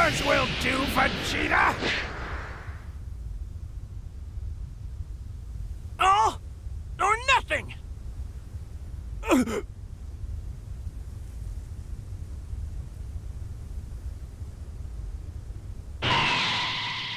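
An energy blast roars and crackles with a deep rumble.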